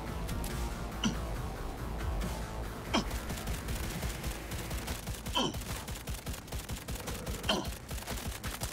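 A pistol fires sharp single shots.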